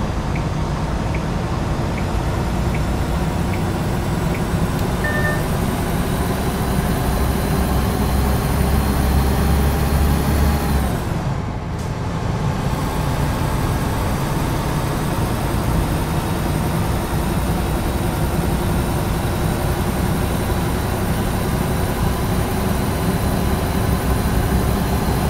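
A truck engine drones steadily and climbs in pitch as it gathers speed.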